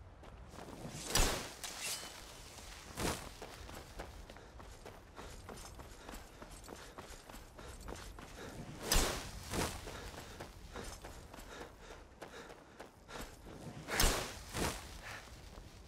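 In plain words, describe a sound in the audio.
A magic spell crackles and whooshes in short bursts.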